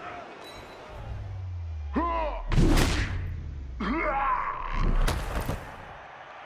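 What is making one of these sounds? A large crowd roars in a stadium.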